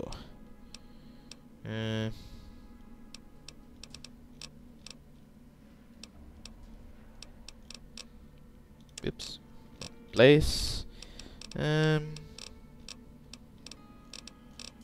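Menu clicks tick softly as items are scrolled through.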